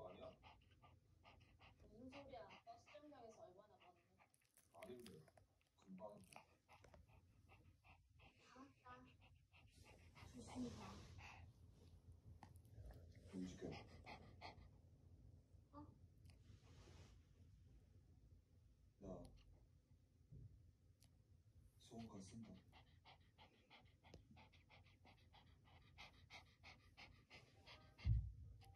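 A small dog pants rapidly and close by.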